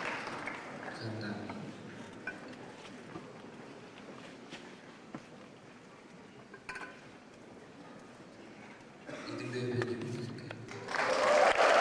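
A man speaks through a microphone and loudspeakers in an echoing hall.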